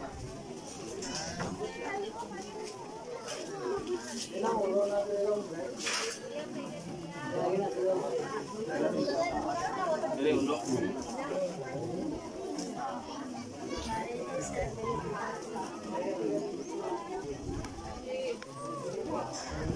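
A large outdoor crowd of men, women and children chatters loudly all around.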